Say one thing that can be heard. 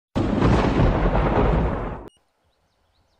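Thunder cracks and rumbles loudly, then cuts off.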